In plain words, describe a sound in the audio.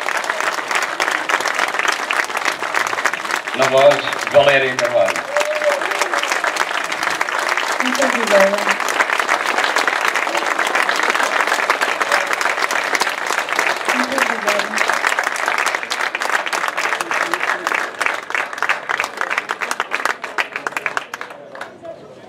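An audience applauds outdoors.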